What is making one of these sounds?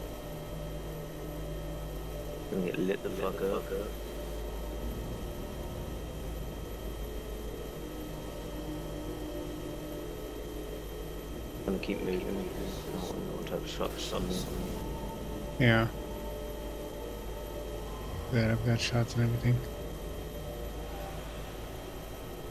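A helicopter engine drones with a low, steady rumble.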